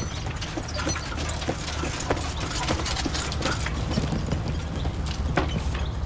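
A horse's hooves clop on a dirt track.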